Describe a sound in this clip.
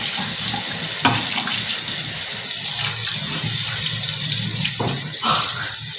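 A metal tray knocks against a sink.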